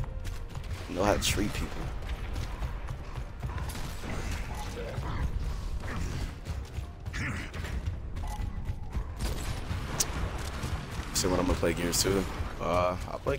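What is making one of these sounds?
Heavy armoured footsteps thud on a hard floor.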